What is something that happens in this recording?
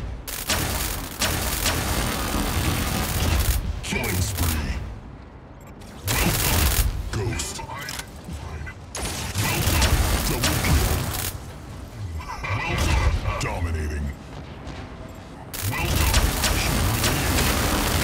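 An electric zap crackles.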